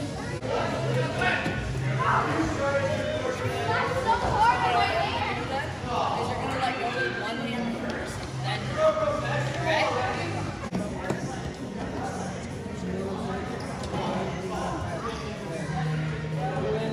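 Children shout and chatter nearby in a large echoing hall.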